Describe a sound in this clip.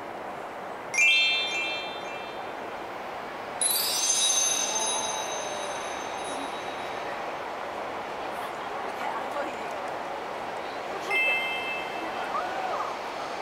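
Bright chiming tones ring out from a light installation.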